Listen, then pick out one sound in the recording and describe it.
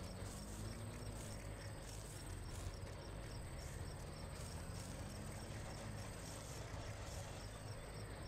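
Footsteps thud quickly on grass.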